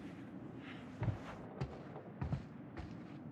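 Heavy footsteps thud slowly across wooden floorboards.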